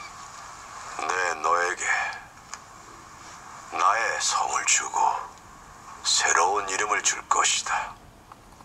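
An older man speaks calmly, heard through a television speaker.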